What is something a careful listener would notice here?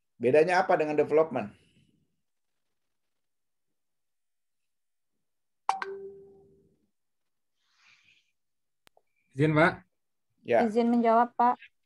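A man speaks in short bursts over an online call.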